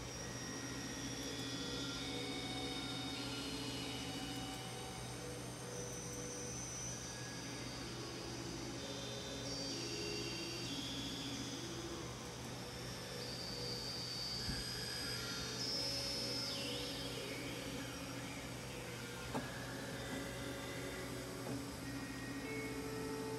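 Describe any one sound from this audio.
A synthesizer plays slow, sustained electronic chords.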